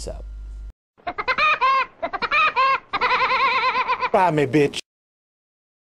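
A cartoon bird cackles with a loud, high, rapid laugh.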